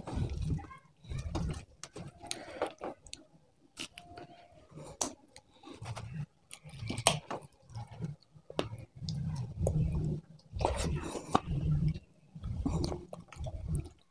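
Fingers squish and pick through soft food close by.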